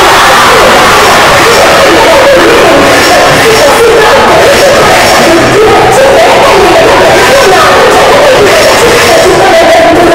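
Loud music with a singing voice plays through loudspeakers.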